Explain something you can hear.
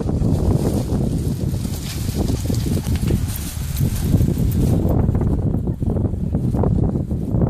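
A palm frond rustles and shakes as a dog tugs on it.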